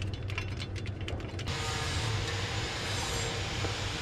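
Metal tools click against a metal bracket.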